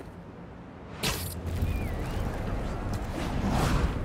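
Wind rushes past loudly during a fast swing.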